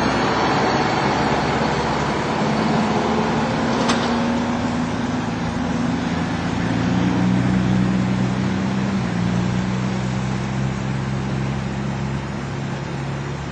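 A heavy truck engine rumbles loudly as it drives past.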